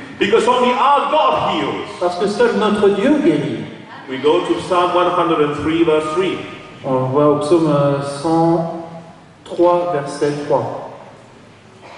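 A man sings with feeling into a microphone.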